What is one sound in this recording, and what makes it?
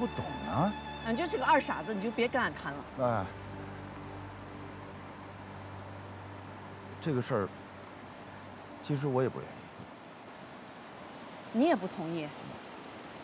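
A woman talks back with emotion nearby.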